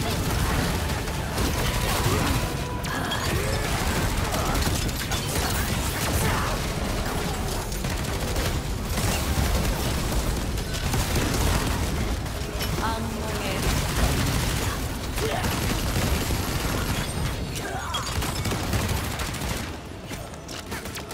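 Game spell effects crash and boom in quick succession.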